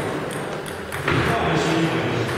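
A ping-pong ball bounces on a table in an echoing hall.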